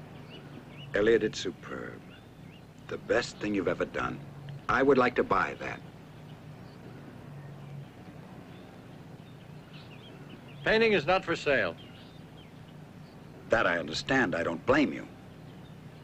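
A young man answers calmly nearby.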